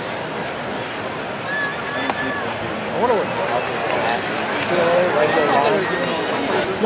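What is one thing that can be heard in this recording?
A large stadium crowd murmurs and chatters steadily all around.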